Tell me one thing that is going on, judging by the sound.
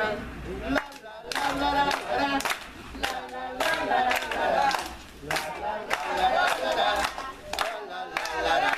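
A group of children sing together loudly outdoors.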